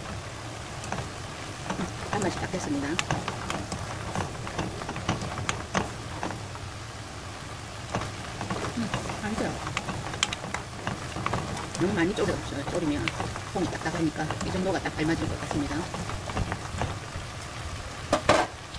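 Beans sizzle and bubble in a hot pan.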